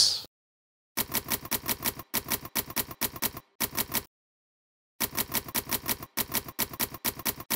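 Typewriter keys clack in quick bursts.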